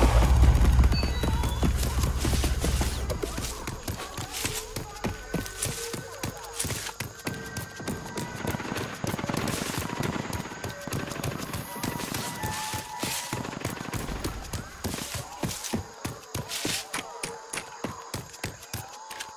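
Quick footsteps run over a dirt path.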